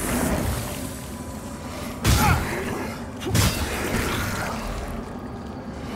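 A weapon swings and strikes with a sharp whoosh.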